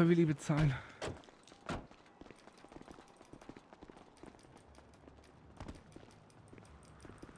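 Footsteps run quickly across hard pavement.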